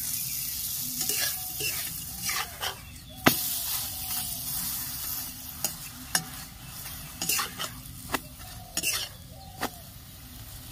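A metal spatula scrapes and taps against an iron pan.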